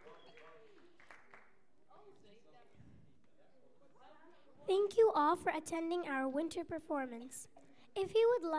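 A choir of children sings together in a hall.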